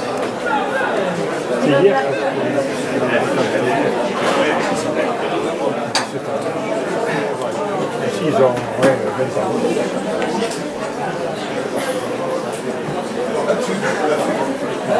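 A crowd of spectators chatters and calls out from the sidelines outdoors.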